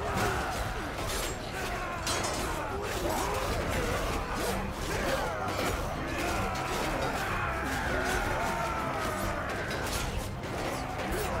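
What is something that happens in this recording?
A crowd of men shout and yell all at once.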